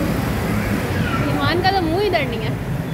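A young child calls out in a high voice.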